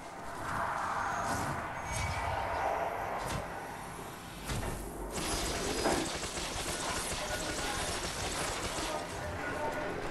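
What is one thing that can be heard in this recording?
Blades clash with sharp metallic hits.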